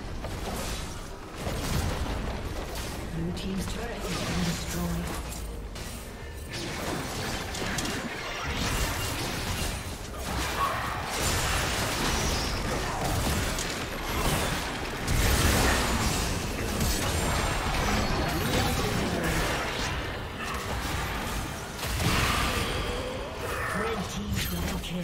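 Game spell effects crackle and burst in a fast fight.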